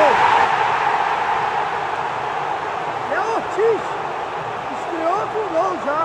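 A large stadium crowd roars and cheers, loudest at first and then easing off.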